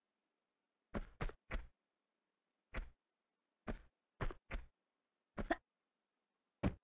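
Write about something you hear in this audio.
Footsteps run across a metal floor.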